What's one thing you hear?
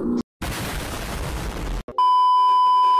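An explosion roars with a heavy rumbling blast.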